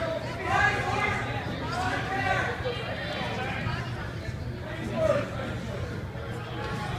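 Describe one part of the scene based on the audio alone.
Spectators talk and call out in a gym with some echo.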